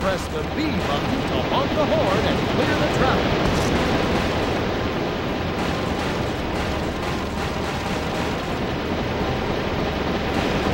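A snowplow engine rumbles steadily.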